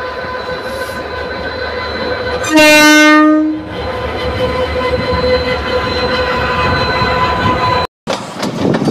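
Train wheels clatter on rails.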